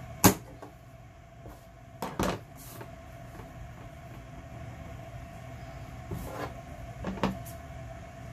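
Paper rustles as it is folded and pressed flat.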